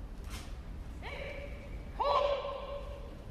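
A man lets out a short, sharp shout in a large echoing hall.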